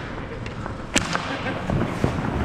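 A hockey stick clacks sharply against the puck.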